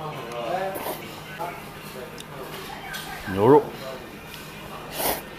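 A young man slurps noodles loudly up close.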